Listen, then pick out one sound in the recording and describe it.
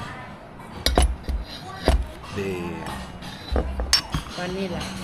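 Cups and dishes clink on a table.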